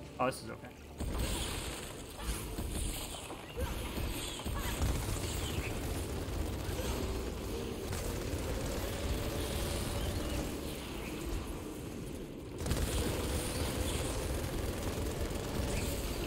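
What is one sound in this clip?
Energy weapons fire and crackle in quick bursts.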